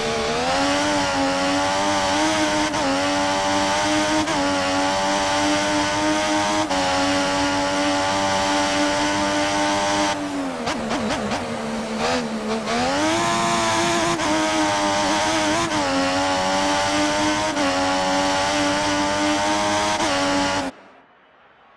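A racing car engine screams at high revs, dipping briefly as it shifts down and then climbing again.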